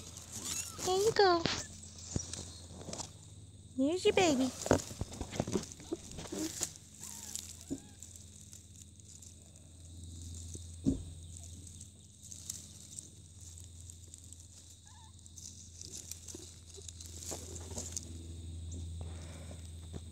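Leaves and twigs rustle close by as a hand brushes through them.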